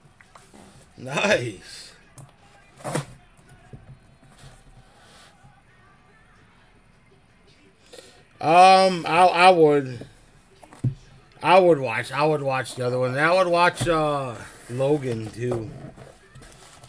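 A cardboard box scrapes and knocks against a table.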